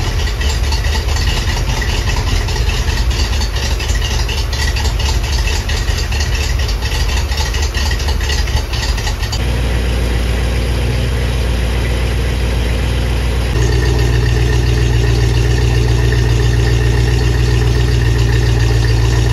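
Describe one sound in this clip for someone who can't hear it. An engine runs loudly nearby with a steady low rumble.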